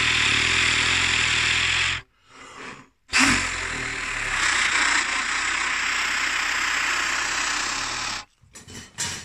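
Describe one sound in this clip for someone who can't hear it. A trumpet plays loud, blaring notes up close.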